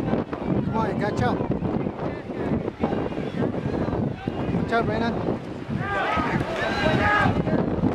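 Swimmers splash and churn through the water.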